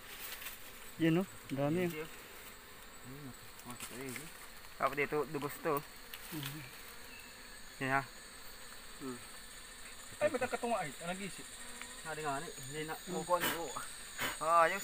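A man talks close by in short bursts.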